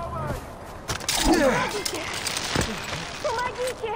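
A grappling rope launches with a sharp whoosh.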